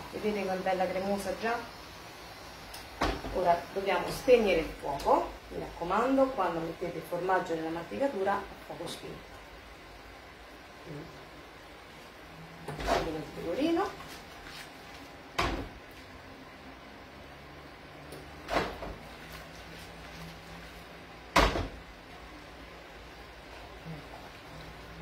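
Food sizzles in a frying pan.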